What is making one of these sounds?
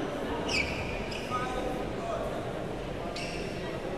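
A shuttlecock is struck with a racket.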